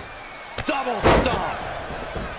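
A body slams down hard onto a wrestling mat.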